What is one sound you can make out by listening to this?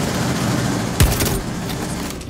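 A gun fires a sharp shot.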